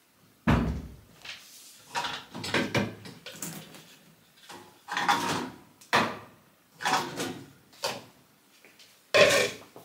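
Dishes clink as they are loaded into a dishwasher rack.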